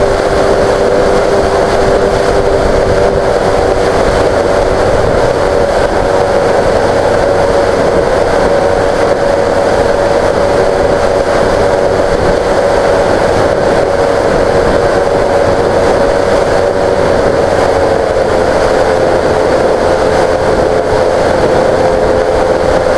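Wind rushes and buffets loudly against the microphone.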